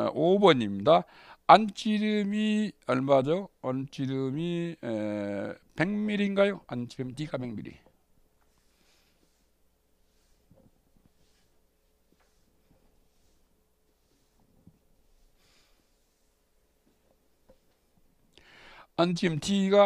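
A middle-aged man reads out calmly through a microphone.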